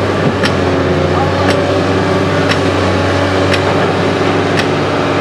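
A compact tracked diesel excavator's engine rumbles as the machine works its arm.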